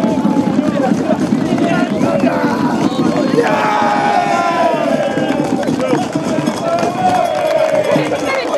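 A group of young men sing and chant loudly together outdoors.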